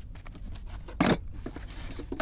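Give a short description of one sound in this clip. A wooden box knocks down onto the floor.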